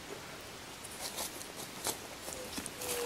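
Footsteps crunch softly on a leafy forest path.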